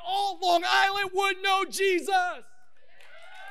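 A man speaks loudly and with animation through a microphone.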